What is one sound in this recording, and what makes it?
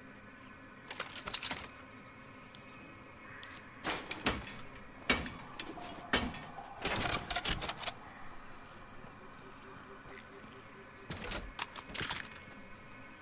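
Short clicks and chimes sound as items are picked up in a game.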